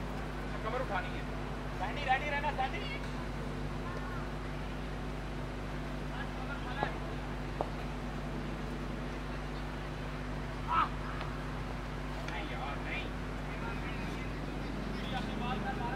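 Men call out across an open field from a distance.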